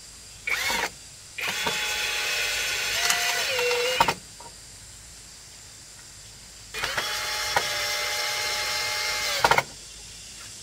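A cordless drill whirs in short bursts as it bores into bamboo.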